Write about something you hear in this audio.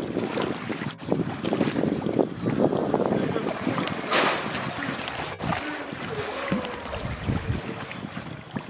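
Water splashes and sloshes as an animal swims close by.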